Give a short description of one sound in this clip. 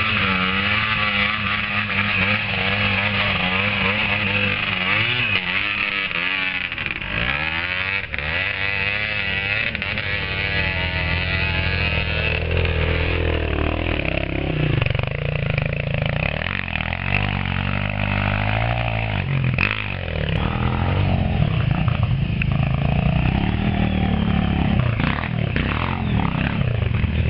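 A dirt bike engine revs and roars close by.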